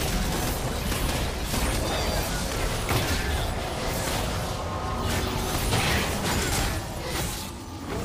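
Game spell effects whoosh and crash in quick bursts.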